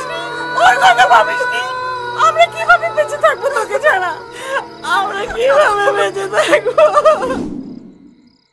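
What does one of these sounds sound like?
Young women talk softly close by.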